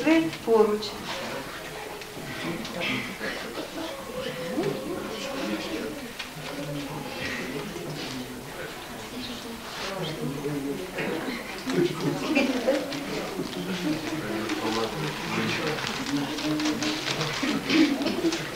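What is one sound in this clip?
A crowd murmurs softly in the background.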